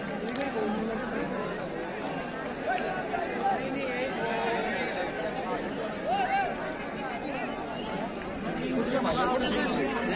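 A crowd of young men chatter and call out outdoors.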